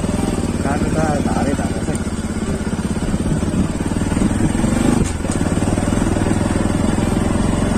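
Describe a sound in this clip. A motorcycle engine putters steadily at low speed.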